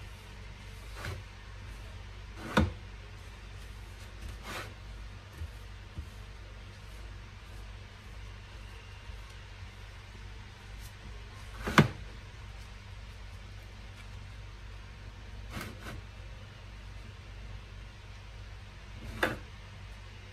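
Things tap and knock on a hard board.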